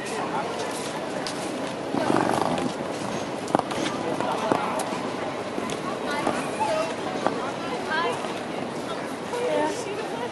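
A tram rolls slowly along the street.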